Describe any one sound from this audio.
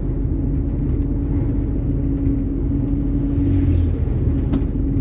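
A truck passes by in the other direction.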